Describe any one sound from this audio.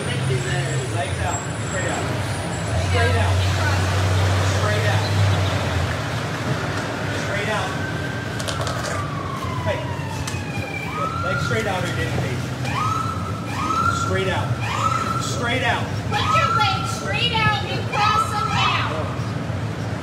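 A man speaks loudly nearby outdoors.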